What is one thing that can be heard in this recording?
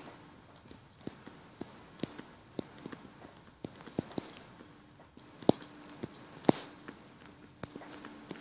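A stylus taps and scratches on a tablet.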